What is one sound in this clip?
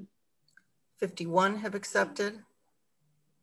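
An older woman speaks briefly and calmly over an online call.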